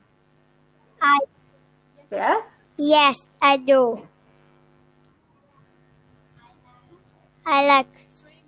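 A boy speaks in short phrases into a microphone over an online call.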